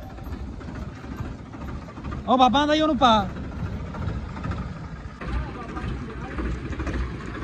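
A tractor engine idles with a low rumble.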